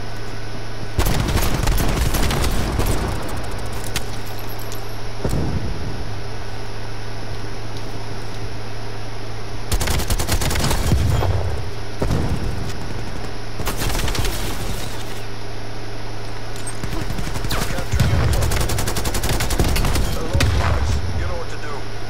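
Gunfire rattles in rapid bursts, with loud shots close by.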